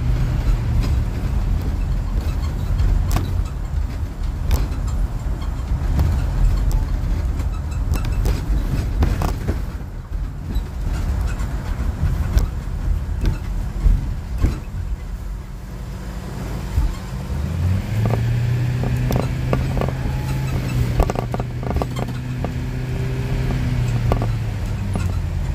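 A car drives along a street, with road and tyre rumble heard from inside.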